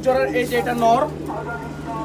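A pigeon flaps its wings close by.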